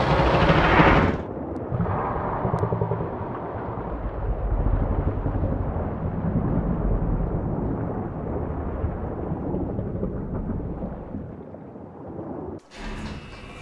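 Water churns in a low, muffled rush.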